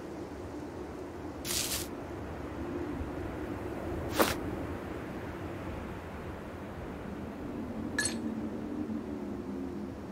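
Glass clinks lightly.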